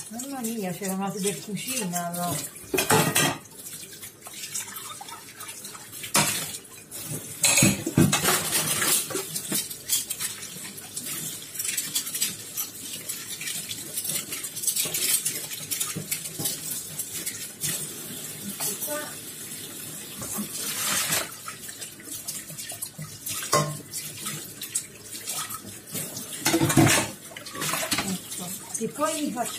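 Dishes clink and clatter against a metal pot.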